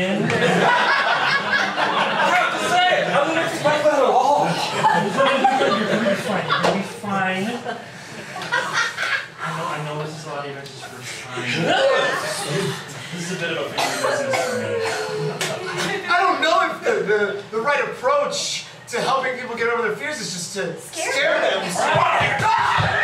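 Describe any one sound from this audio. An audience laughs in a small room.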